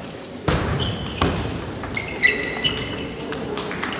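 Sports shoes squeak sharply on the floor.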